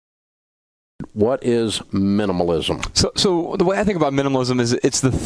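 Men talk with animation.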